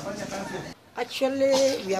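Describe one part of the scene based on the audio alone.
A woman speaks into a microphone up close.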